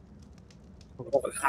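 A man talks briefly over an online call.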